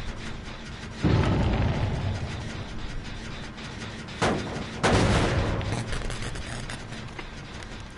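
Flames burst up with a loud whoosh and crackle.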